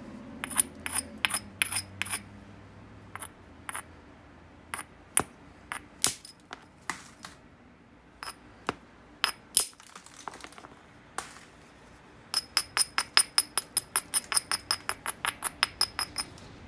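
A stone tool taps and clicks sharply against the edge of a glassy rock.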